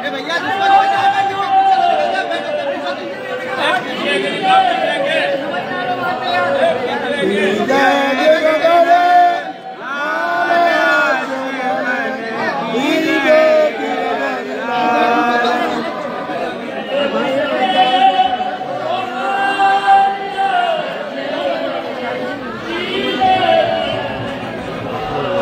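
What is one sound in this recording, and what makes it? A crowd of worshippers sings a devotional hymn.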